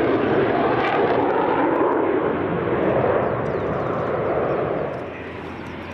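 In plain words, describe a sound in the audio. A jet engine roars loudly overhead.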